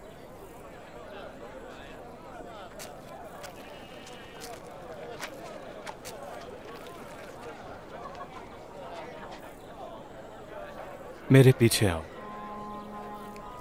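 A crowd of people murmurs softly in the background.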